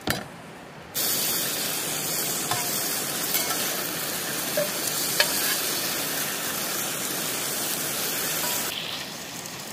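Bacon sizzles loudly in a hot pan.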